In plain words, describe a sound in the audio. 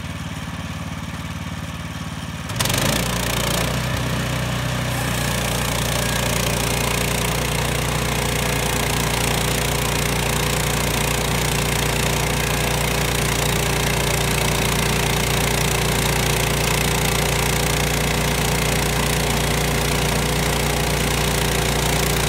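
A sawmill engine drones steadily.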